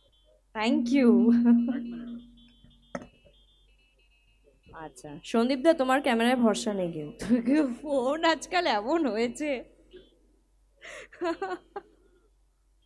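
A young woman speaks with animation into a microphone, amplified over loudspeakers.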